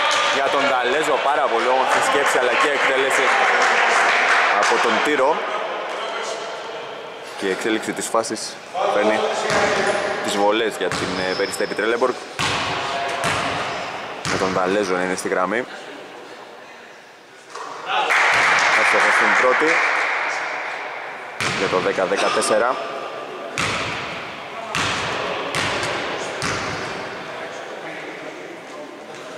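A basketball bounces on a wooden floor with a sharp echoing thud.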